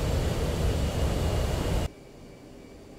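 A jet engine roars loudly.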